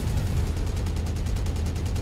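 A large explosion roars.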